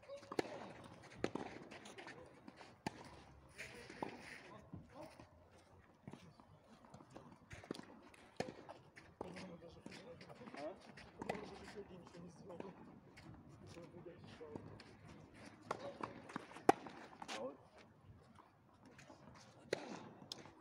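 Tennis balls bounce on a clay court.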